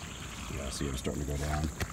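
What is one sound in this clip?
A boot squelches in wet mud.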